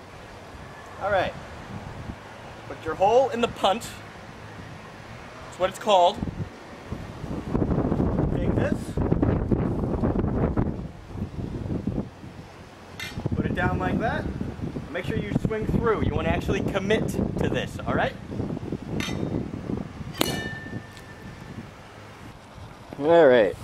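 A man talks calmly, close by, outdoors.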